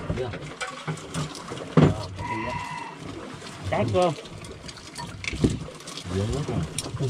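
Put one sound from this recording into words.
Spoons and chopsticks clink against bowls.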